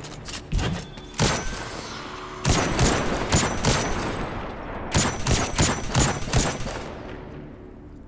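A rifle fires sharp shots in quick bursts, each shot echoing away.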